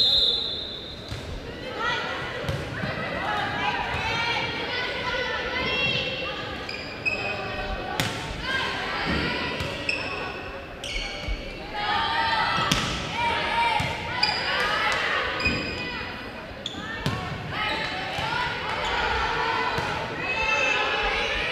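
A volleyball is struck with sharp slaps in a large echoing gym.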